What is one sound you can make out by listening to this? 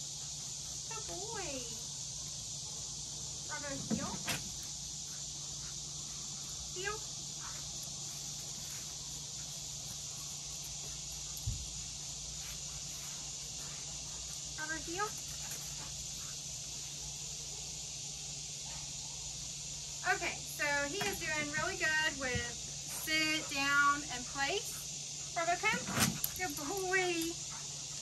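A woman talks to a dog in a high, cheerful voice nearby.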